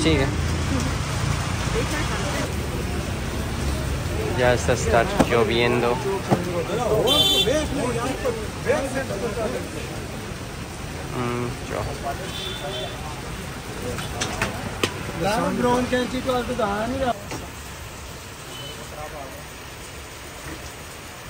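Street traffic rumbles steadily.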